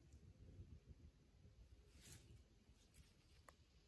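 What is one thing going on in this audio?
Leaves and twigs crunch underfoot.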